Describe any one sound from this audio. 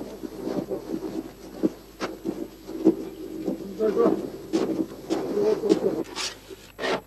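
A cart's wooden wheels roll and creak over hard ground.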